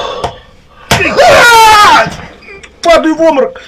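A man cries out loudly.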